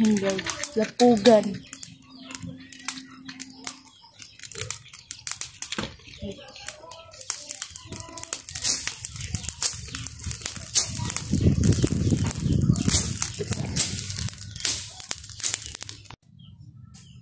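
Burning grass crackles and pops nearby.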